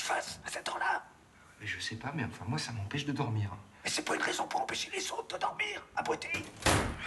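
An elderly man speaks sharply, up close.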